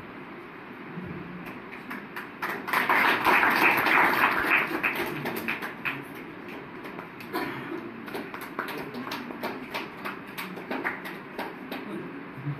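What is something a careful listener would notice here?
A group of people applauds and claps their hands.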